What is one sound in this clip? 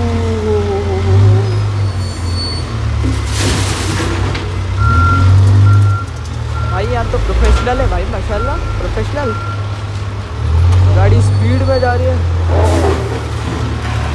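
A backhoe engine rumbles steadily close by.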